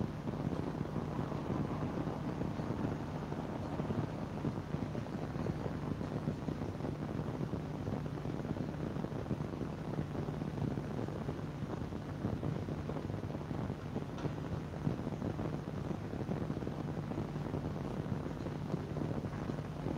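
An electric fan whirs steadily nearby.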